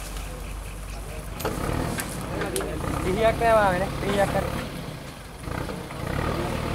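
An elephant pushes through dense brush, leaves rustling and twigs snapping.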